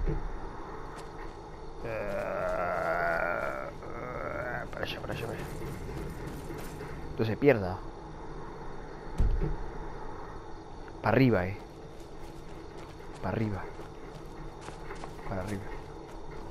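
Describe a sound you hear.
Footsteps crunch on grass and earth.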